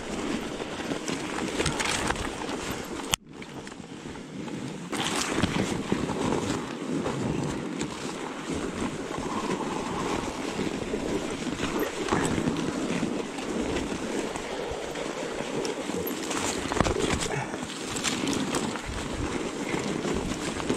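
Snow-laden branches brush and scrape against a bicycle.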